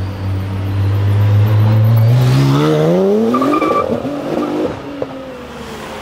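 A race car engine roars loudly and revs up as the car accelerates away.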